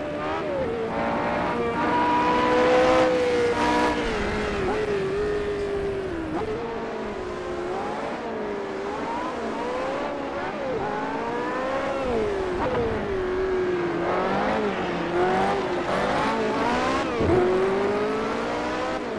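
A racing car engine roars and whines up and down through the gears as it speeds by.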